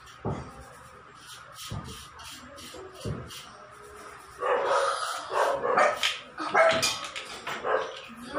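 Metal pots clink and clatter as they are set down.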